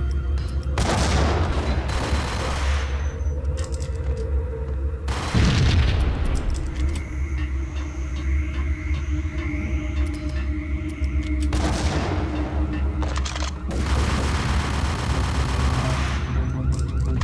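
Pistols fire in rapid bursts of sharp shots.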